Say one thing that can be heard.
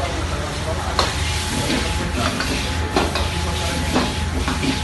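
Metal utensils clatter against pans.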